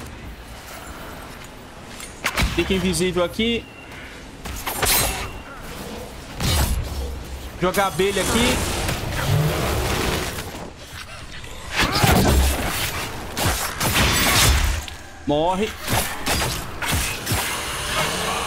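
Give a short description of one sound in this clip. Magic spells burst and crackle.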